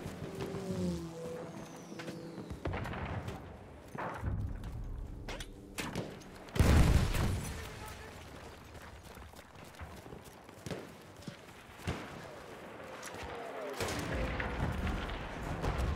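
Gunfire crackles in sharp bursts.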